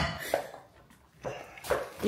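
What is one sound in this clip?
A wooden spatula stirs food in a pan.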